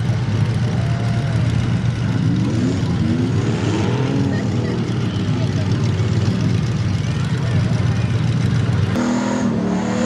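Engines of off-road trucks rumble steadily in the distance.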